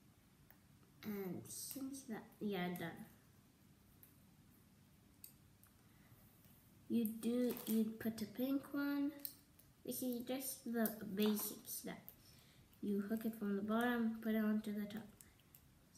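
A young girl talks calmly close by.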